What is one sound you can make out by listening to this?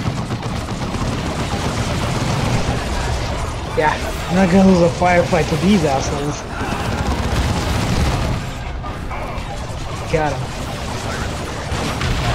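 Guns fire and blasts crackle in a noisy battle.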